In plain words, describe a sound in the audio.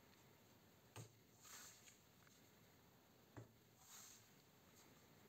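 Playing cards tap and slide softly on a table.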